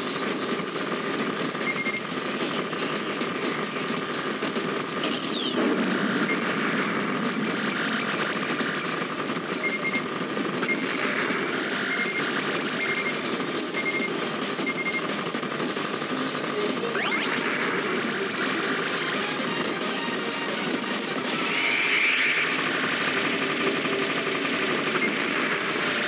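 Upbeat electronic music plays throughout.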